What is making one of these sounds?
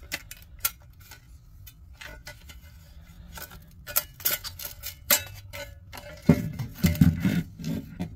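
Wires and components rustle and scrape as hands pull them.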